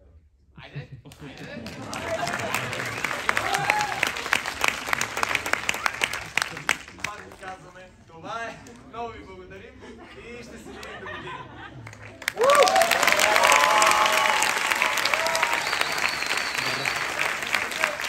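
An audience claps loudly in a large hall.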